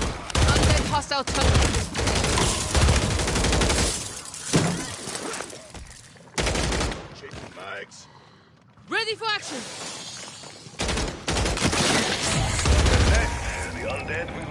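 Rapid gunfire bursts out in loud, fast volleys.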